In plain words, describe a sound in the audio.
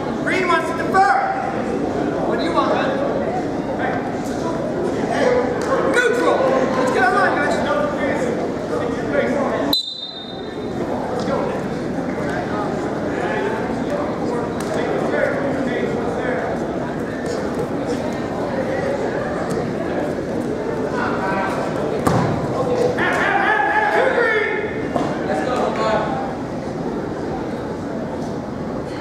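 A crowd of spectators talks and cheers in a large echoing gym.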